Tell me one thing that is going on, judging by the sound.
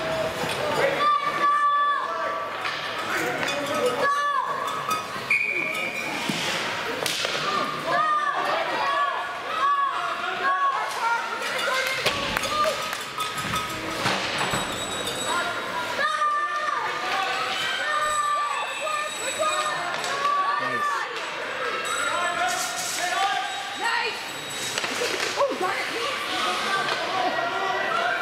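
Spectators shout and cheer loudly nearby.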